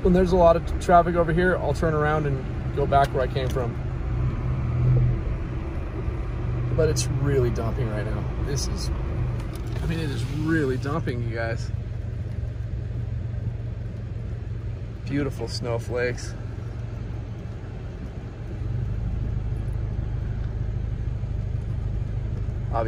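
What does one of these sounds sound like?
A car engine rumbles low and steady while driving.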